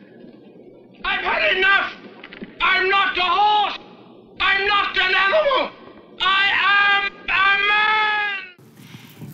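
A man yells loudly in long, wild bursts.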